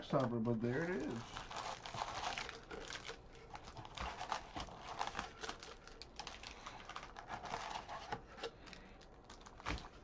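Foil card wrappers crinkle and rustle in hands.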